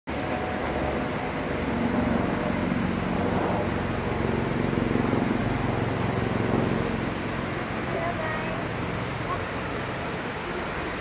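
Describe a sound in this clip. A waterfall roars steadily in the distance.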